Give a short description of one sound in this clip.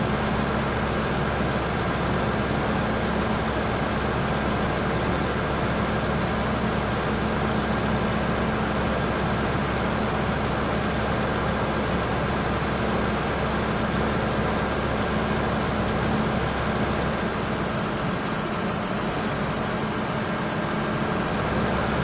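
Grain pours with a rushing hiss into a trailer.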